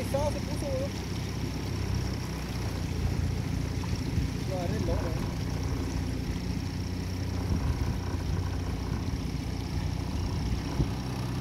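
Water splashes and churns in a boat's wake.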